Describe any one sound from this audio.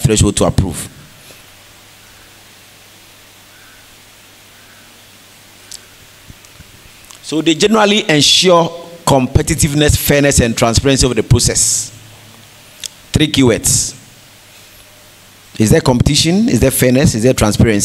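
A man speaks through a microphone in a large echoing hall, pausing between phrases.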